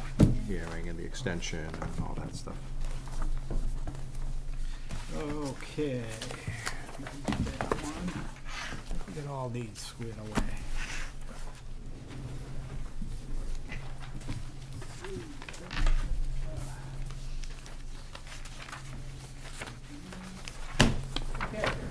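Paper rustles as a man handles documents.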